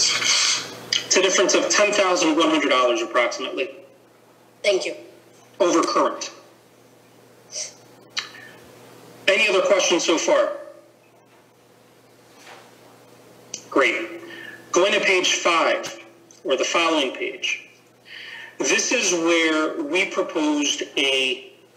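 A man speaks calmly into a microphone, in bursts with pauses.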